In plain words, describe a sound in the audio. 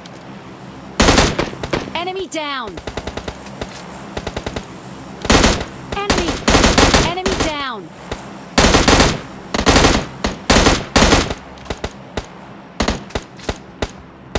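Rifle shots crack in loud bursts.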